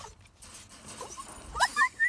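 Paws scrabble against a wire fence.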